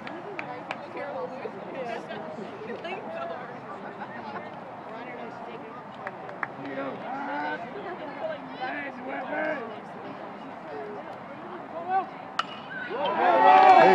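A crowd chatters nearby.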